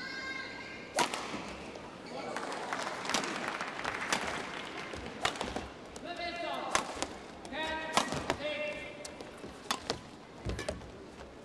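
Rackets smack a shuttlecock back and forth in a fast rally.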